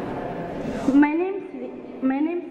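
A girl speaks through a microphone.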